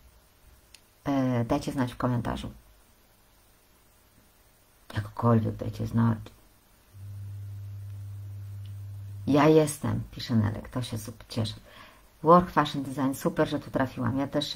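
A woman speaks with animation in bursts, close to a microphone.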